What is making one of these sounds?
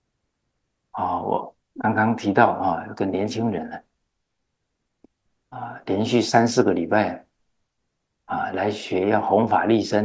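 An elderly man speaks calmly and warmly into a close microphone.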